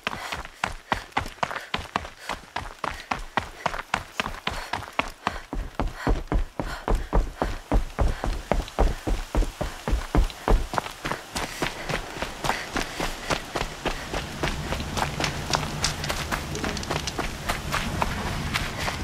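Quick running footsteps crunch over snow, wood and earth.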